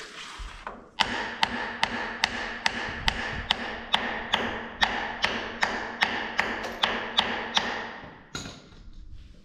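A hand grease gun clicks in quick, even strokes.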